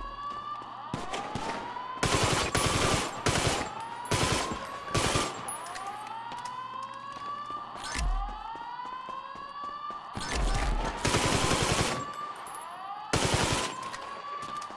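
A gun fires shots in rapid bursts.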